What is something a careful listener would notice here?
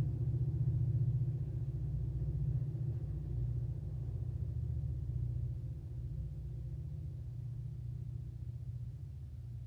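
A distant train rumbles low and slowly fades away.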